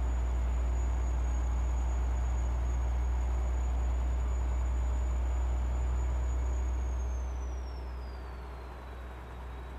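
A truck engine drones steadily and then eases off.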